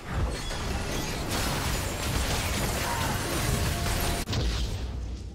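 Magic blasts and weapon clashes crackle loudly in a fast battle.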